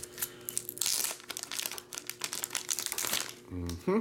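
A plastic card sleeve crinkles between fingers.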